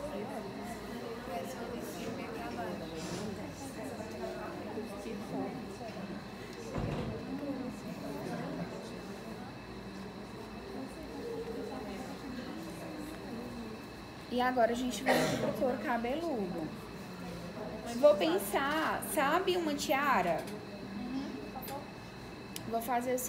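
Several young women chatter quietly in the background.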